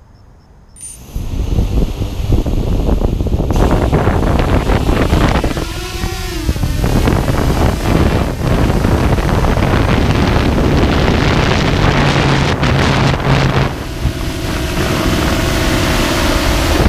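An FPV quadcopter's motors spin up and its propellers whine in flight.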